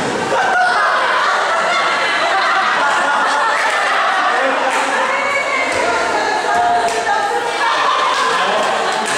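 Several men and women chatter nearby in a large echoing hall.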